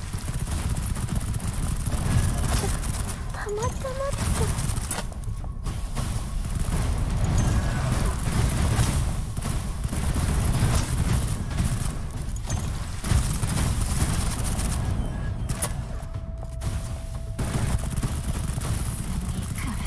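Energy blasts crackle and boom in rapid bursts.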